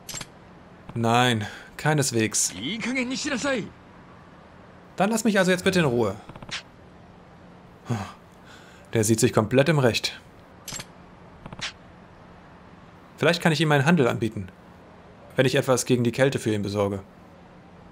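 A younger man speaks calmly and quietly.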